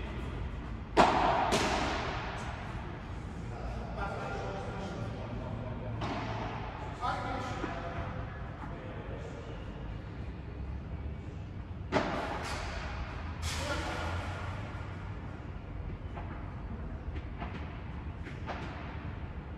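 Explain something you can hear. Padel rackets strike a ball with sharp pops that echo through a large hall.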